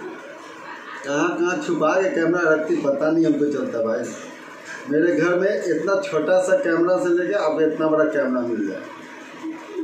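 A man talks with animation close by, in a room with a slight echo.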